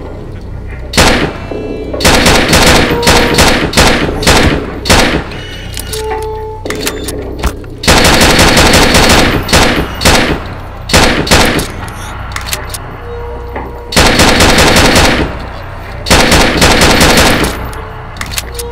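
A pistol fires rapid shots that crack and echo.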